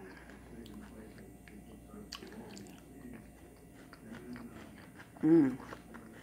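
A woman chews food noisily up close.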